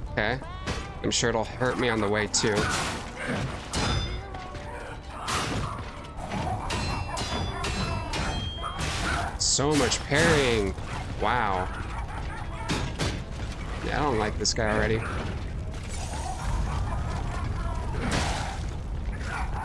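Metal weapons clang and thud.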